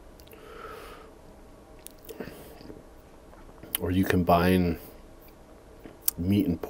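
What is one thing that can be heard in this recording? A man licks his fingers with wet smacking sounds.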